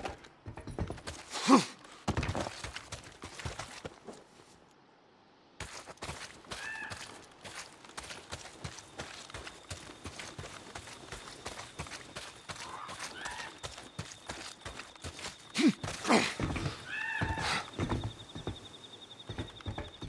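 Footsteps crunch over grass and dirt at a steady walking pace.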